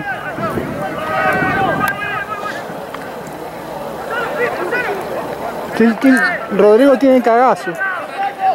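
Young women shout and call out to one another across an open field.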